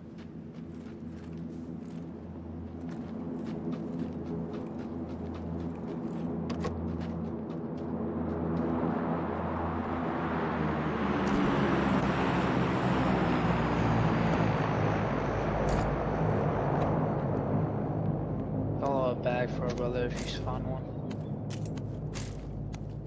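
Footsteps run quickly over grass and hard floors.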